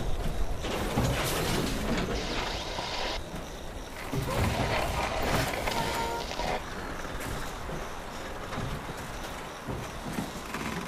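Heavy armored footsteps clank on the ground.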